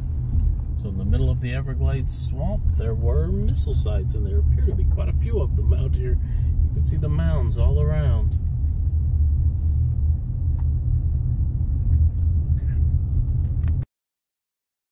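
A car drives along a paved road, heard from inside with a low rumble.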